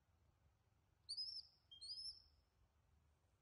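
A baby monkey squeaks in short high chirps.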